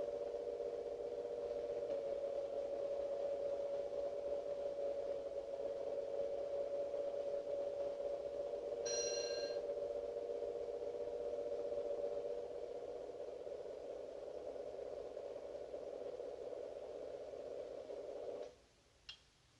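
A car engine idles steadily and then cuts off.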